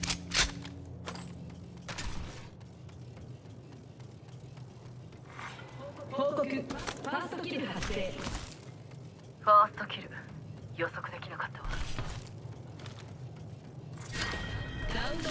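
Footsteps clatter on metal floors.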